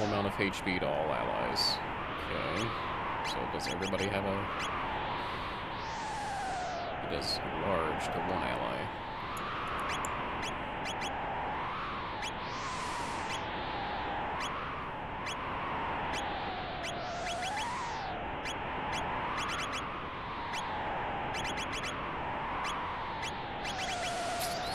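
Short electronic blips tick as a game menu cursor moves.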